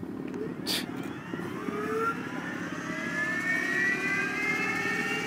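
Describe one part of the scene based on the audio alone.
A turboprop engine whines and climbs in pitch as it spools up.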